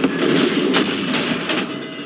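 A large explosion booms nearby.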